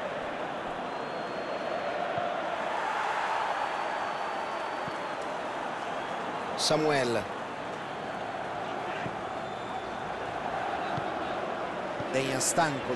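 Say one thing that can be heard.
A stadium crowd roars and murmurs.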